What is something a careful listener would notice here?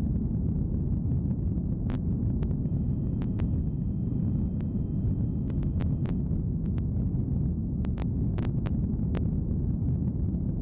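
A rocket engine roars with a steady low rumble.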